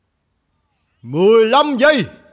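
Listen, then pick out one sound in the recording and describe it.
A young man shouts loudly nearby.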